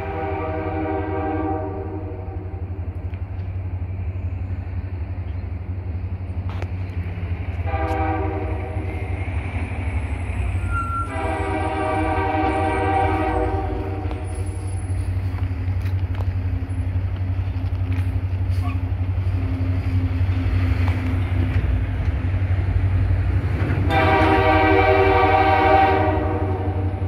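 A train horn blows in long blasts, coming closer.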